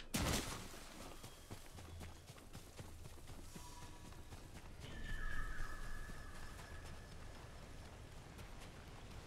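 Footsteps run over grass and gravel.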